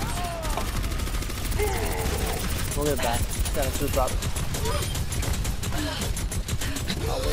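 A video game energy weapon fires in rapid bursts.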